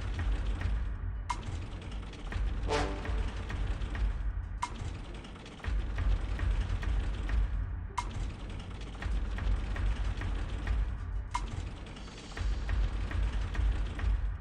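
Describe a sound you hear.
Slot machine reels spin with rapid ticking clicks.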